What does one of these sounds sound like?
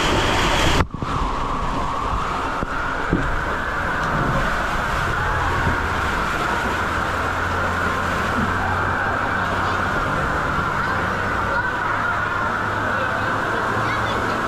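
Water gushes and churns at the bottom of a slide in a large echoing hall.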